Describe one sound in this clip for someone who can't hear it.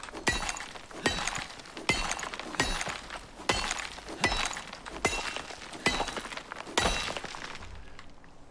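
A pickaxe strikes rock with steady, repeated blows.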